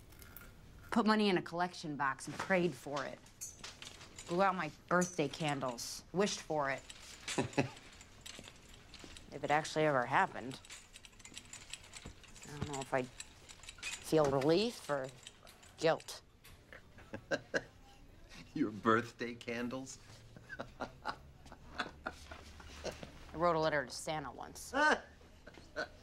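A young woman speaks quietly and earnestly, close by.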